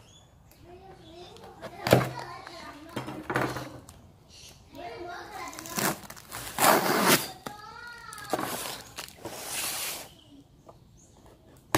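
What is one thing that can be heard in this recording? A knife slices through packing tape on a cardboard box.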